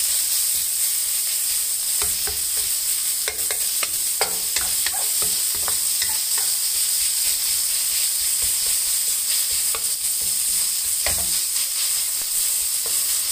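A wooden spatula scrapes and taps against a metal pan.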